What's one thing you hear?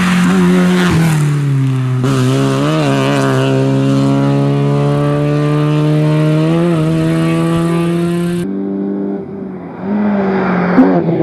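A rally car shifts gears, its engine pitch dropping and climbing again.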